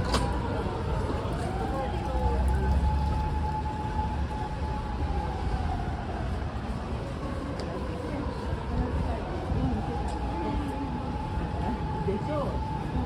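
Traffic hums steadily along a busy city street outdoors.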